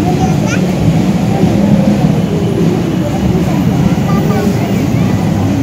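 A crowd chatters outdoors.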